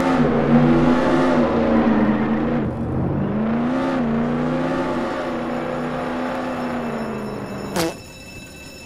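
A car engine hums and revs as the car drives.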